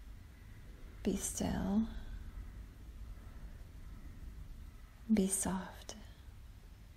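A woman speaks softly and calmly nearby.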